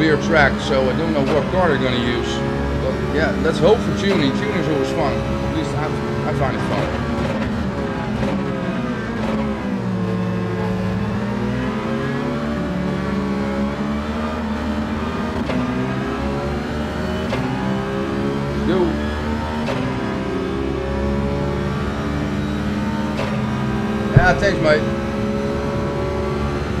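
A racing car engine roars steadily, its pitch dipping when it slows for a bend and rising again.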